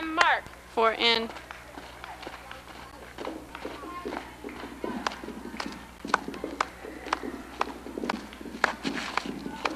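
Feet march on dirt.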